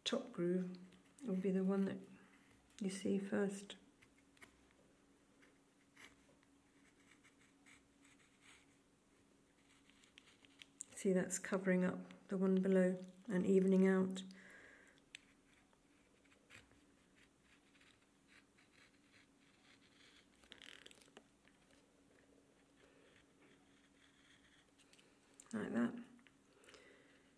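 A knife shaves thin curls from wood with quiet scraping.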